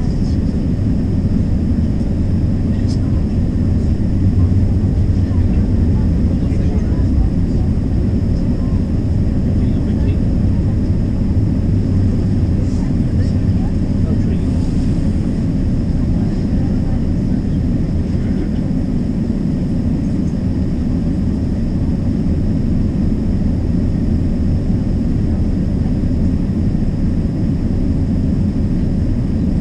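A vehicle's engine rumbles steadily from inside as it drives along.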